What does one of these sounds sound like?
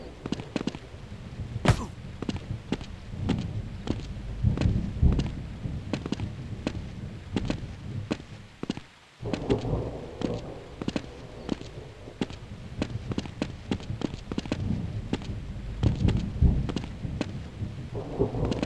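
Footsteps thud and scrape steadily on rock and grass.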